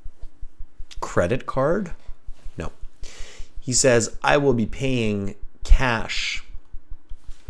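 A man speaks calmly and clearly, close to a microphone.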